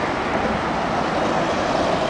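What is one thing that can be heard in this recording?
A bus drives past close by.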